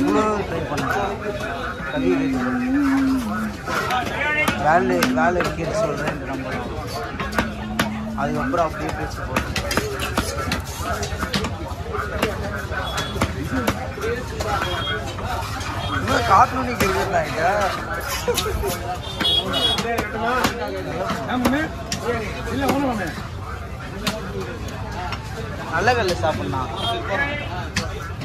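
A heavy knife chops through fish onto a wooden block with sharp, repeated knocks.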